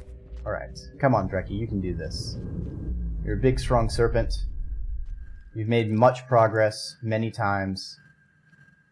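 A man talks with animation through a microphone, close up.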